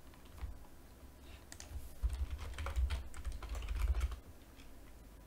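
Keys clatter softly as a man types on a keyboard.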